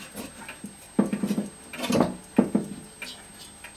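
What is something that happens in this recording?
A hand knocks and bumps against a wooden clock case.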